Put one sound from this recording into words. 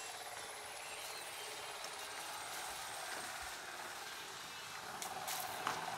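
Footsteps walk slowly on a tiled floor.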